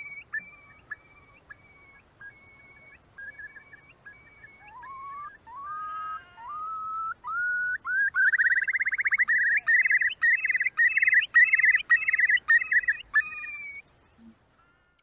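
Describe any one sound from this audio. A recording of a curlew's bubbling, rising call plays over an online call.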